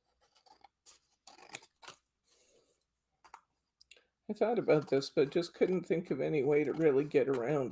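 Scissors snip through card.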